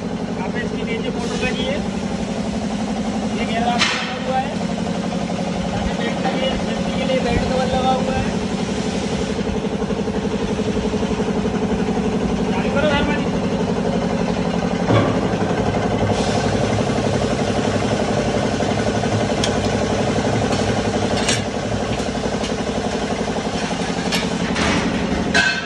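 A machine motor hums and whirs steadily and loudly.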